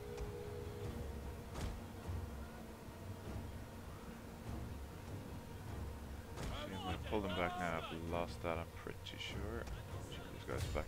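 A distant battle rumbles low and steadily.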